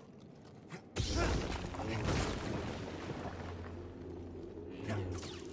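A lightsaber hums and buzzes.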